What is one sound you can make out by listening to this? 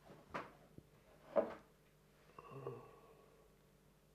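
Men gulp beer from glasses.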